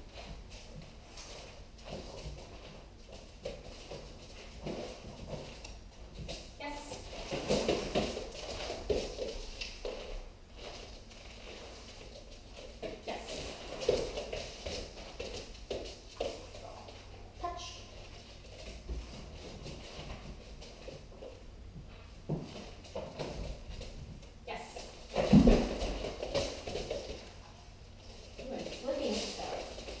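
A young woman speaks encouragingly, close by.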